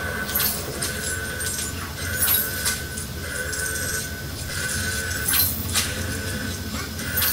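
Video game sound effects and music play from a television speaker.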